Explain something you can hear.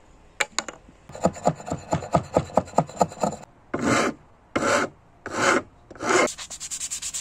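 A hatchet chops into wood with sharp knocks.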